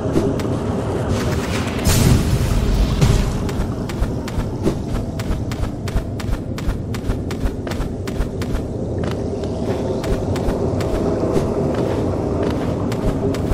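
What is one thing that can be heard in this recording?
Quick light footsteps tap in a steady rhythm.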